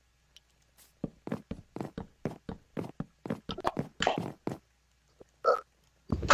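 Wooden blocks are struck in a game with quick, repeated knocks.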